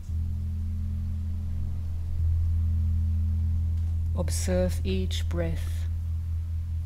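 Crystal singing bowls hum with a steady, deep, ringing drone.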